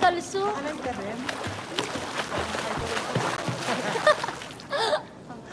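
Water splashes loudly in a pool.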